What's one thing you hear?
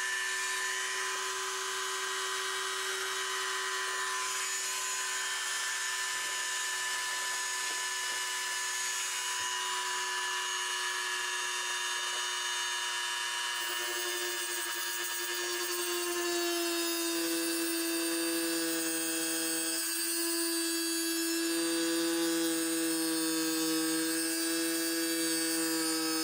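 A small rotary tool whines steadily at high speed, its pitch shifting a little partway through.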